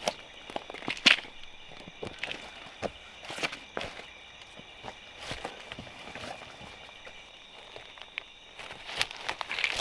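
Rubber boots step over rocks and dry leaves.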